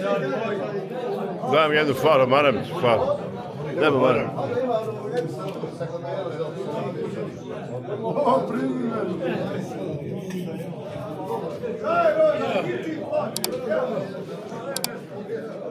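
Several men talk and laugh loudly in a crowded, echoing room.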